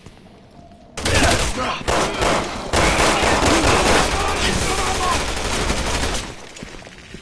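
A gun fires loudly in rapid shots.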